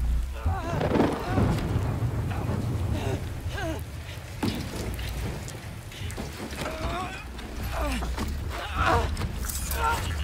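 A storm rumbles low and steadily.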